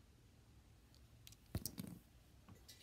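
A small plastic game case clicks open and shut.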